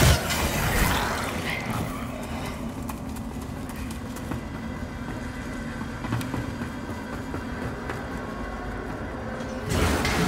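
Heavy footsteps thud on stone and wooden floors.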